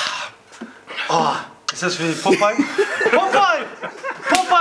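A man laughs close by.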